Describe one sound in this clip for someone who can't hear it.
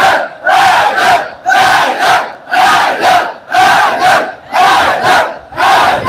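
A man shouts out a chant at close range.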